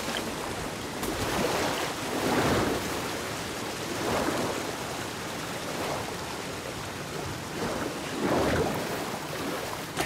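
Water splashes as a figure swims through a pool.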